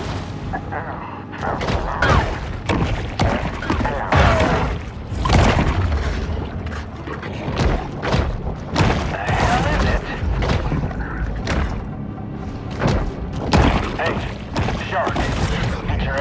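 Muffled underwater sounds rumble as a shark swims and bites.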